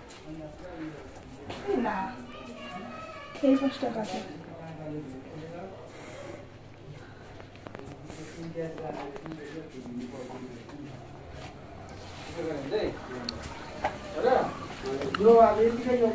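A young woman talks calmly close to the microphone.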